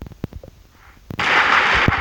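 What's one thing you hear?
Pistols fire rapid shots in a video game.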